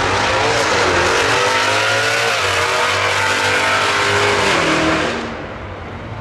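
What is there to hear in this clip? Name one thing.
A race car engine roars loudly at full throttle, rising in pitch, then fades into the distance.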